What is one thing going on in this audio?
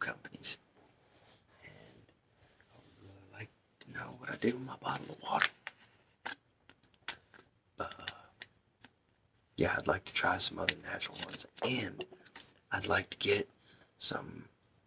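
A man talks softly and close to a microphone.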